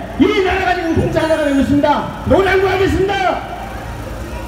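An elderly man shouts loudly through a microphone and loudspeaker outdoors.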